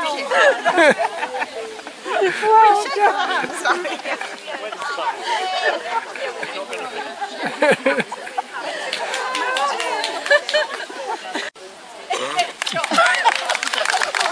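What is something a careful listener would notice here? Elderly women chat and laugh together nearby, outdoors.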